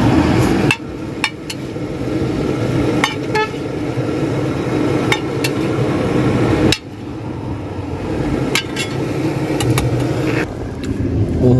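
A metal spatula scrapes and taps on a hot griddle.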